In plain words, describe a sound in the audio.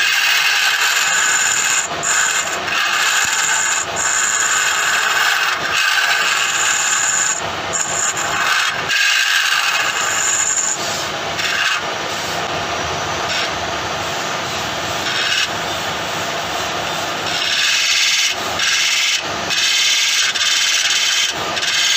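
A chisel scrapes and hisses against spinning wood.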